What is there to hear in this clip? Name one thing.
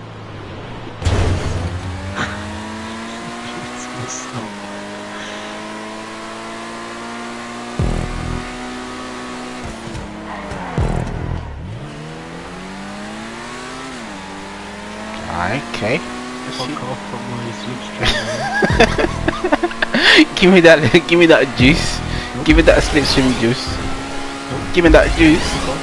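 A racing car engine roars steadily, its pitch climbing and dropping with each gear change.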